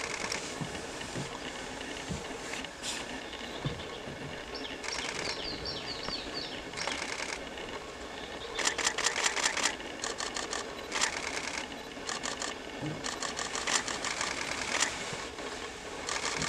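A large wading bird probes shallow water with its bill, making soft splashes.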